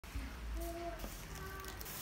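Cardboard parcels rustle and thump as they are handled.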